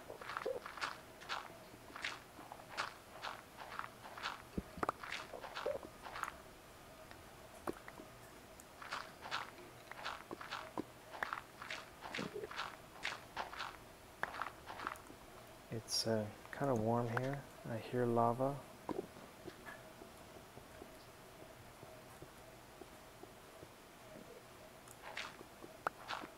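A pickaxe chips at stone in quick, repeated taps.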